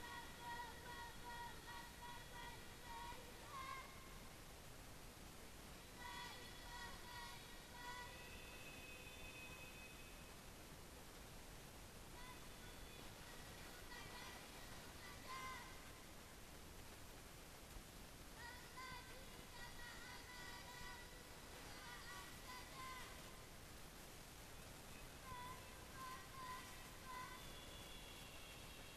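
Children chant a recitation in turn into a microphone, heard through loudspeakers.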